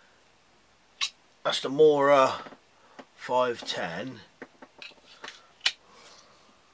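A knife snaps into a sheath with a sharp click.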